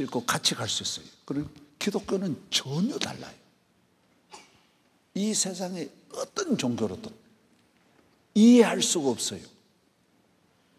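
An older man speaks with animation into a microphone, in a large echoing hall.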